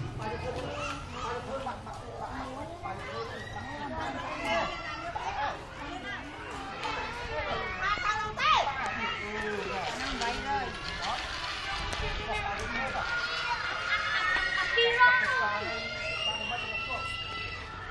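Young children shout and chatter nearby outdoors.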